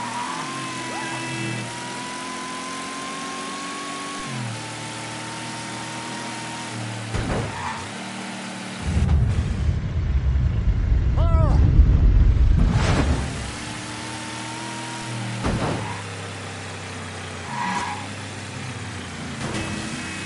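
A car engine hums and revs, shifting through gears.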